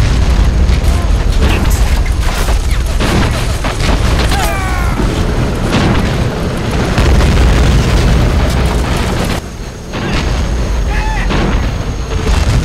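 Heavy vehicle engines rumble low and steadily.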